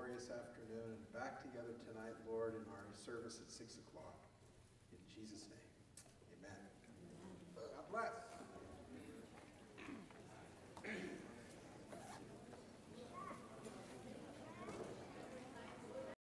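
A middle-aged man speaks into a microphone, heard through loudspeakers in a large room.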